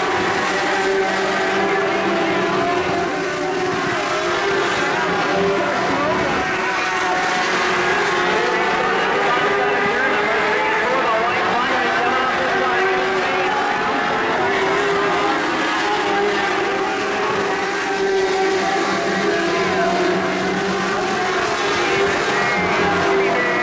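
Several race car engines roar loudly and rev up and down close by.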